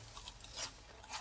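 A man eats, chewing crisp food close by.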